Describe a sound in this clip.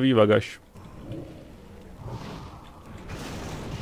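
A large beast growls.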